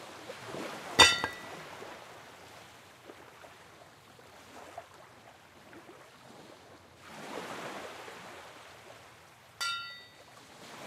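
A bright game chime rings.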